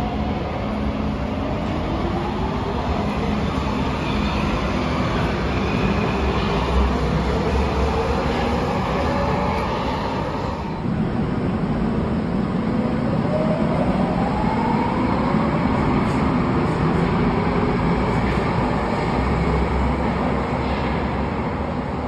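An underground train pulls away from an echoing station with a rising electric whine.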